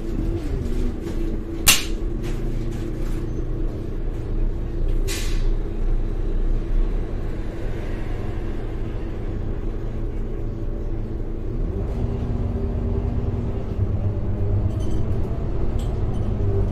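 The bus rattles and creaks over the road.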